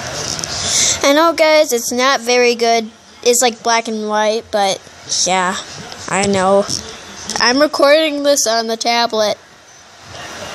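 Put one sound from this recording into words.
A young girl speaks close by, with animation.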